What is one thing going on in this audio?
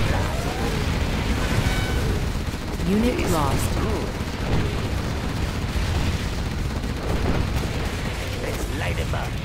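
Cannons and guns fire in a rumbling battle.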